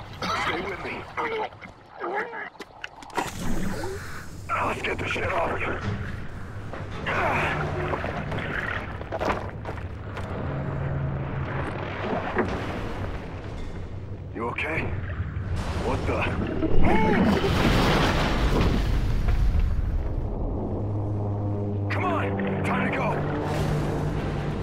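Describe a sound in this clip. A man speaks urgently over a diving radio.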